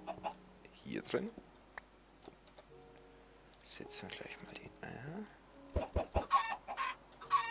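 Chickens cluck.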